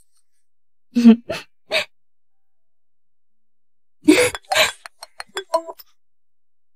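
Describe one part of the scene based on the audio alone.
A young woman giggles softly.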